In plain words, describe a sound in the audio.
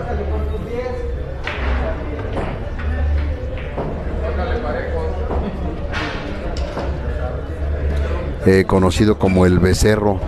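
Men murmur and talk in the background of an echoing hall.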